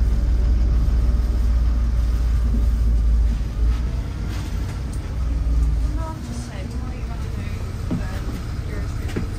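A bus engine rumbles low and steady, then eases as the bus slows down.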